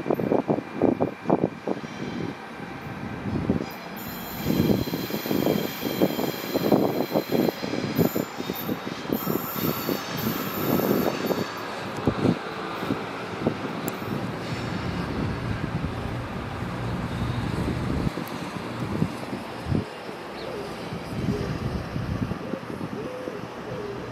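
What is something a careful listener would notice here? An electric train rumbles slowly away along the tracks.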